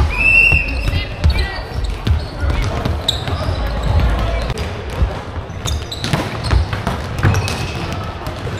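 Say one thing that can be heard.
Volleyballs thud against hands and the floor.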